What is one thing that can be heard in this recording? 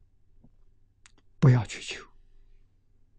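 An elderly man speaks calmly and briefly into a nearby microphone.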